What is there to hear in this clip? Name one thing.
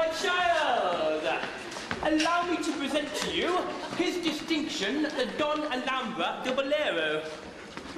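A woman sings on a stage.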